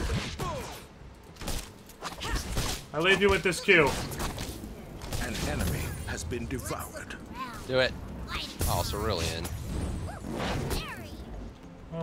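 Spell effects and blows crackle and whoosh in a fast game battle.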